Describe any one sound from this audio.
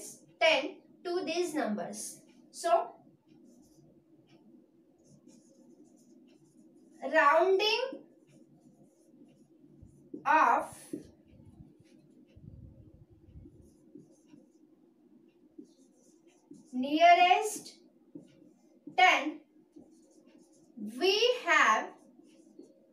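A young woman speaks calmly and clearly, close by, in short phrases.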